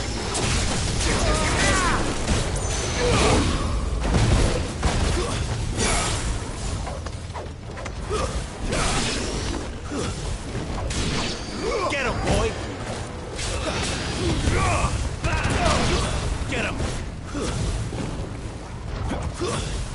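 Swords clash and slash in rapid combat, with sharp metallic hits.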